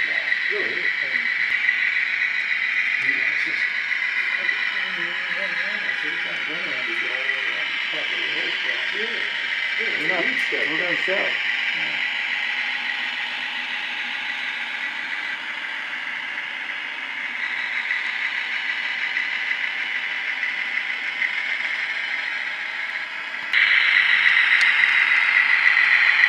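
Small electric model train motors whine steadily as locomotives roll along the track.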